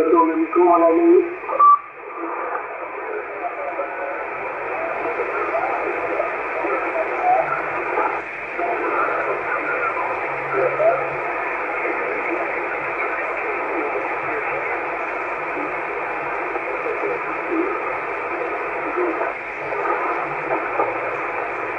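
Static and garbled voices hiss steadily from a radio receiver.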